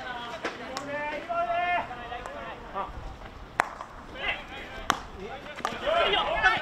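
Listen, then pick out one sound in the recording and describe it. Hockey sticks strike a ball with sharp clacks.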